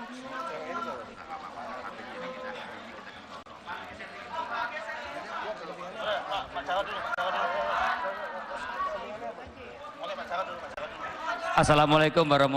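A crowd of people chatter and murmur nearby.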